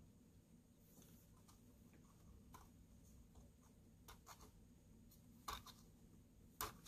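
Fingers click and tap against a plastic computer mouse.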